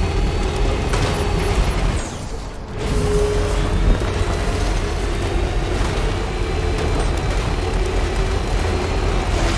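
Tyres crunch over rough, rocky ground.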